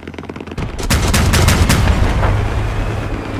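A gun fires rapid bursts.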